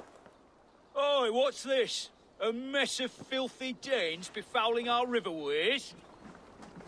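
A man speaks loudly and mockingly, close up.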